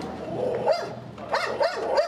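A dog barks nearby.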